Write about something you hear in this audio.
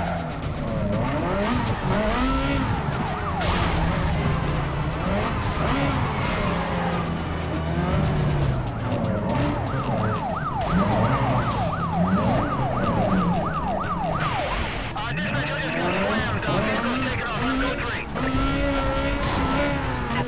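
A race car engine roars and revs up and down at high speed.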